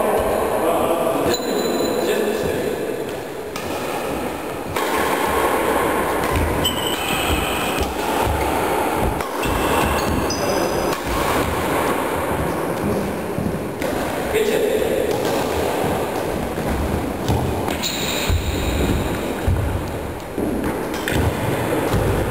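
Badminton rackets strike a shuttlecock back and forth in a large echoing hall.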